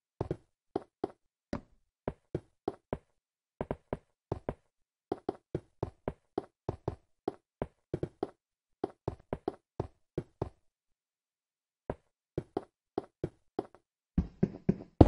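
Footsteps tap on stone at a steady walking pace.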